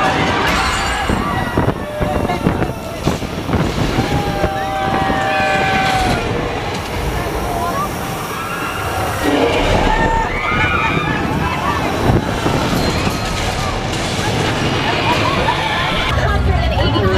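A crowd of people chatter and call out in a dark, echoing space.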